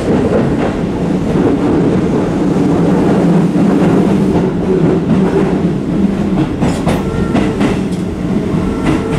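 A train rumbles and rattles steadily along the track.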